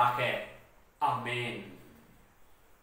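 A man speaks calmly and clearly, close to a microphone.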